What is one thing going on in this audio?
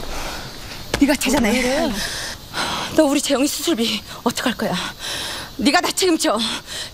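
A middle-aged woman speaks loudly and angrily nearby.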